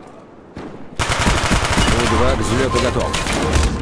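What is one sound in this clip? A submachine gun fires.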